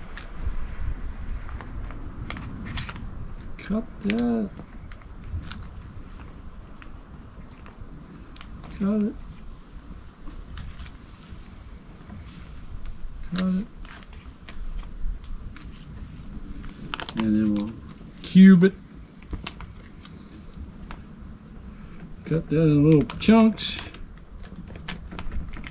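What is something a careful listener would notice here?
Small items rustle and click as a man handles them close by.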